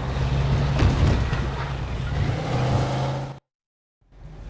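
A car engine rumbles steadily as the car drives.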